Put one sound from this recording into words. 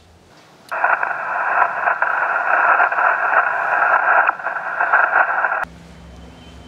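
A radio receiver hisses with loud static.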